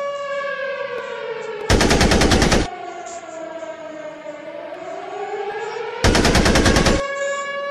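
A tank engine hums steadily and rises and falls in pitch as the tank drives.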